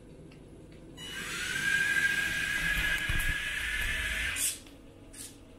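A toy robot car's electric motors whir as it drives.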